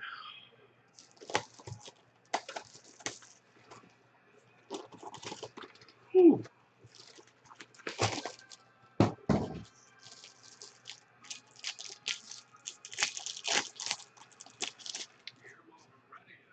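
Foil card wrappers crinkle and rustle close by.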